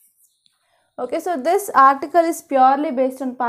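A young woman speaks clearly and with animation into a close microphone.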